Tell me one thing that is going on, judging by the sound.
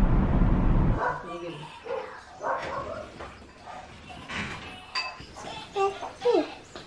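A young boy talks softly up close.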